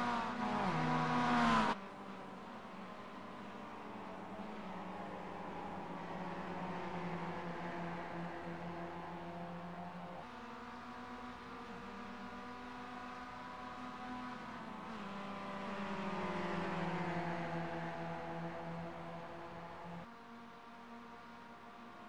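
Four-cylinder race cars roar along a track at racing speed, their engines rising and falling in pitch.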